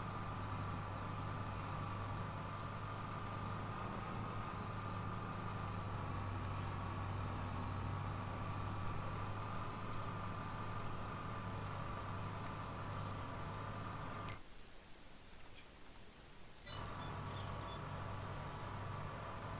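A tractor engine hums steadily and drones at a constant pitch.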